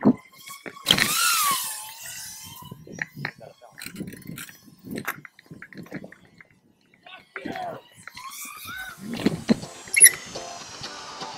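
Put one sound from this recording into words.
Bicycle tyres roll over concrete.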